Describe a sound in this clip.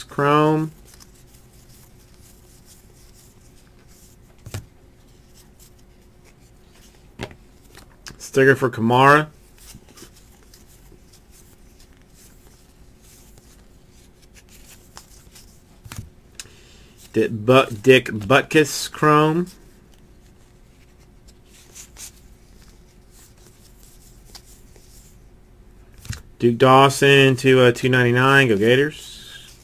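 Trading cards slide and rustle against each other in a stack.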